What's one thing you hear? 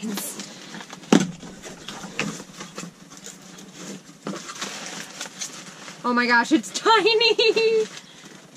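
Cardboard rustles and scrapes as a box is opened.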